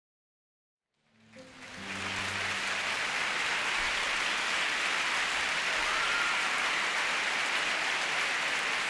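A large audience applauds steadily in a big echoing hall.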